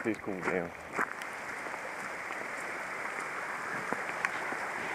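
A stream rushes steadily nearby.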